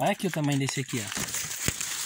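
Leaves rustle as a hand pushes through them.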